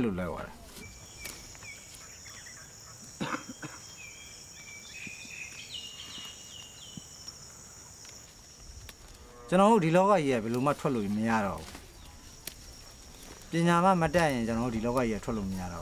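Leaves rustle as plants are pulled from the soil.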